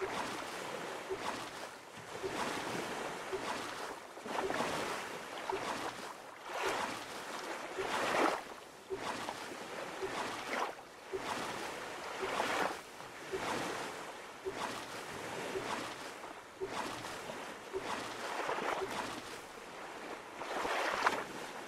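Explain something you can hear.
Oars splash rhythmically through water.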